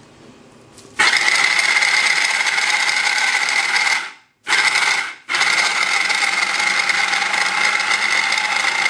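An electric food chopper whirs loudly, briefly stops and starts again.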